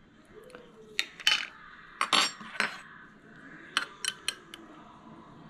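A metal spoon clinks against a glass jar.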